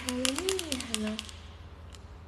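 A young woman squeals playfully close by.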